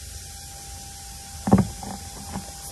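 A sheet of paper is slapped down on a table.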